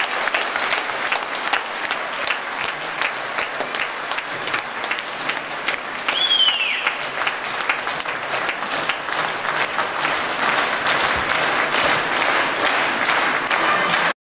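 Tap shoes click and clatter in quick rhythm on a wooden stage.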